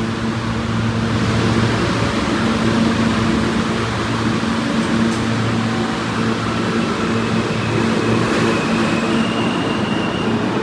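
A subway train pulls away, its rumble and screech growing loud in an echoing station.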